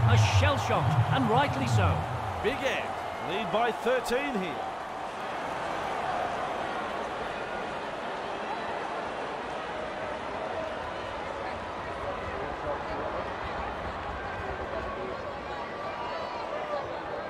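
A large crowd murmurs steadily in a big stadium.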